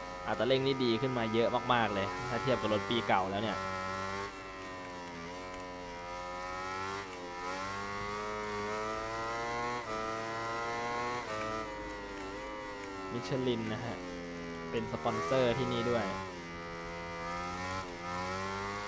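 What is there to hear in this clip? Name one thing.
A motorcycle engine roars steadily, rising and falling in pitch as it speeds up and slows down.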